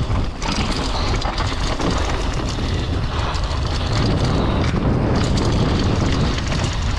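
Bike tyres roll and crunch quickly over a bumpy dirt trail.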